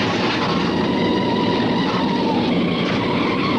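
A heavy truck engine rumbles steadily as it drives along a road.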